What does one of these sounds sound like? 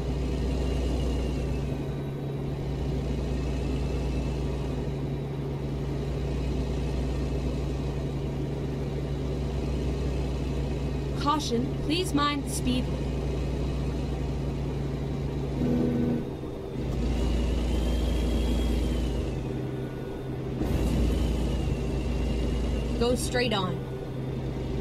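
A truck engine drones steadily at highway speed.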